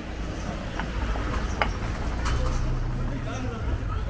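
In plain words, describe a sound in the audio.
A car rolls slowly past close by.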